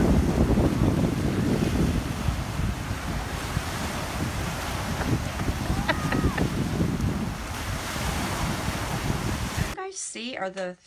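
Waves wash onto the shore outdoors in wind.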